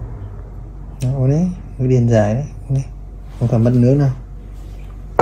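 A man talks softly and gently, close by.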